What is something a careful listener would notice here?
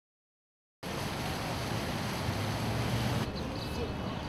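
Water splashes steadily in a fountain.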